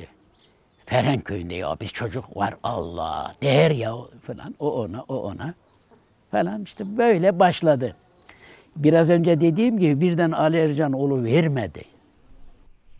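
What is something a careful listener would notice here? An elderly man speaks with emotion close to a microphone.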